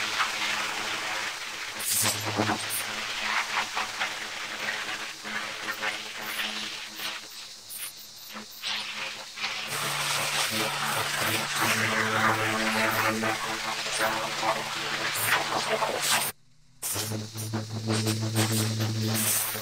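A pressure washer sprays water hard against concrete with a loud, steady hiss.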